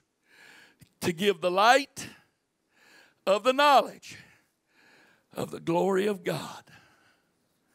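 A middle-aged man speaks with animation into a microphone, heard through loudspeakers in a large echoing room.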